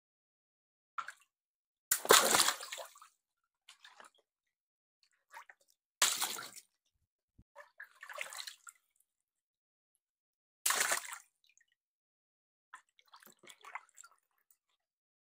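Water splashes and sloshes as hands move through it.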